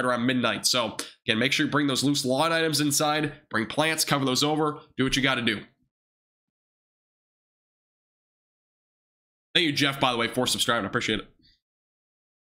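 A young man speaks calmly into a close microphone, with pauses.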